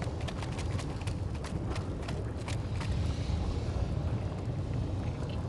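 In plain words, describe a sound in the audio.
Lava rumbles and bubbles with a deep, steady roar.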